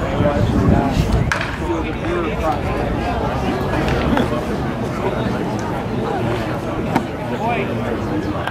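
Men talk casually in the background.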